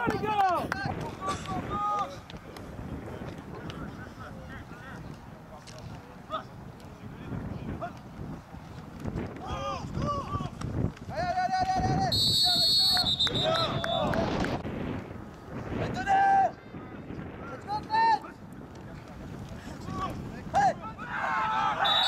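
Players shout across an open field.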